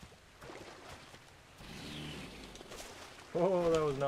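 A crossbow fires with a sharp twang.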